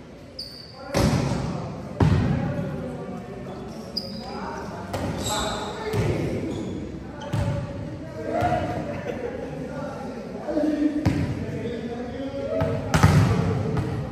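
A volleyball thuds off players' arms and hands in a large echoing hall.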